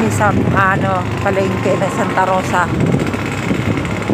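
Motorcycles and tricycles rumble past nearby.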